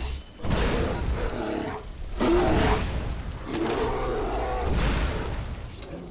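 A bear growls and snarls.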